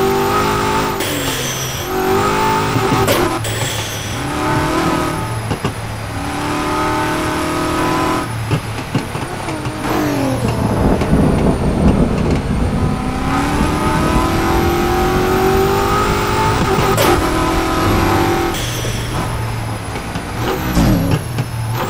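A powerful car engine roars, revving up and dropping back with each gear change.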